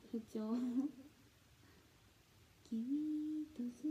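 A young woman laughs softly into a microphone.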